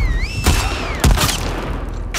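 A rifle fires a loud shot.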